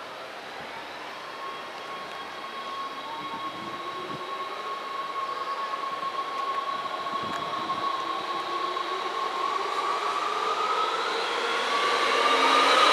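An electric train approaches, its rumble and whine growing steadily louder.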